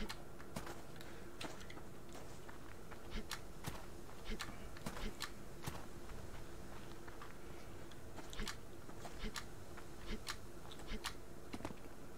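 Footsteps tread softly through grass and over gravel.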